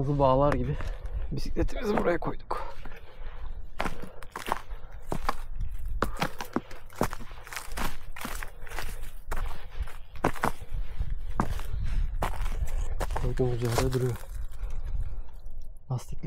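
Footsteps crunch on rough ground outdoors.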